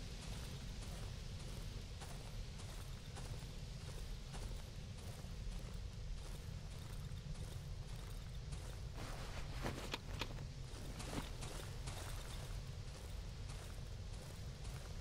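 Footsteps tread steadily on rough ground.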